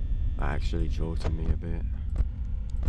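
A young man speaks briefly into a close microphone with animation.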